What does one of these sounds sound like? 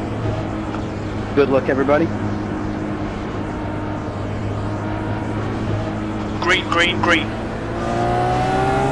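A single-seater race car engine hums at low revs.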